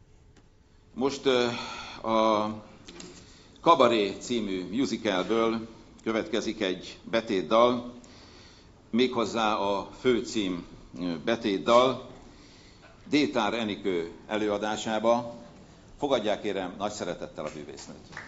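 An older man reads aloud into a microphone in a large hall.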